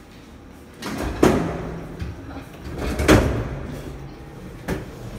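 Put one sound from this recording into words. A luggage cart rolls and rattles over the floor.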